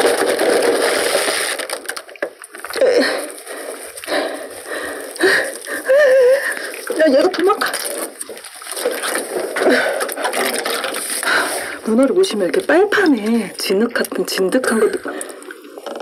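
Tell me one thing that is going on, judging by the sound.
Salt scrapes and rubs against a wet octopus skin.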